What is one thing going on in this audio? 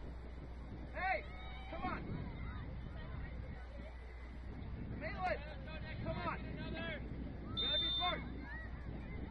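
Young players shout to each other at a distance across an open field.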